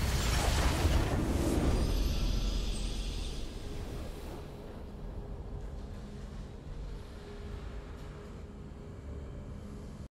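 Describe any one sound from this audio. A triumphant game fanfare plays.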